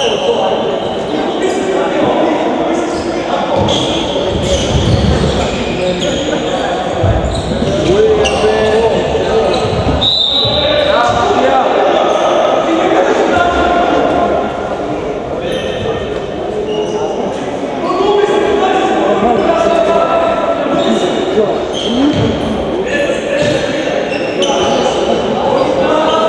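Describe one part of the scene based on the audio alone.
Sneakers squeak on a gym floor, echoing in a large hall.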